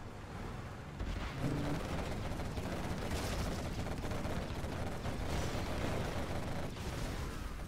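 Tanks fire their guns in a battle.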